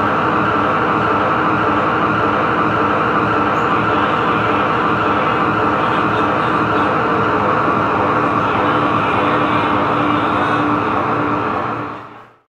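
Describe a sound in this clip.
A drum kit is played behind the guitars.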